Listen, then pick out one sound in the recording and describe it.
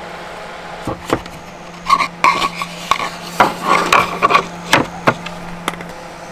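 Wooden rings knock against each other and onto a plastic lid.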